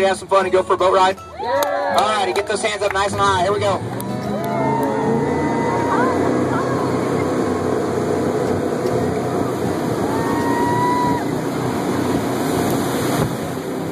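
A crowd of passengers screams and cheers loudly up close.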